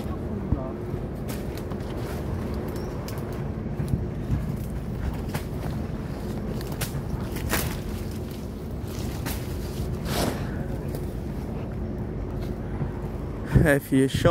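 Leaves and twigs rustle as someone walks through dense undergrowth.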